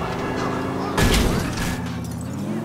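A car crashes into a pole with a loud bang.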